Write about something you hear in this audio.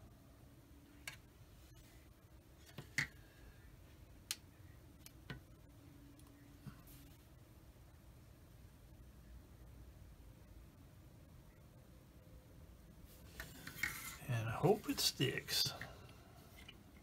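Small plastic parts click and tap as they are handled on a table.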